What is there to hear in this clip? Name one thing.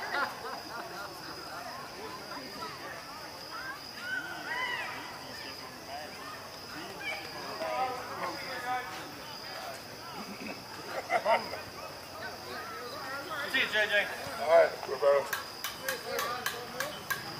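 Men's voices call out across an open outdoor field.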